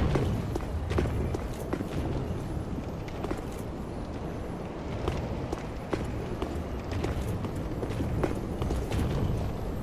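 Armored footsteps clank steadily on roof tiles.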